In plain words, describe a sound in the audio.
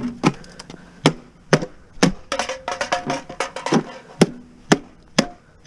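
A hammer taps sharply on plastic.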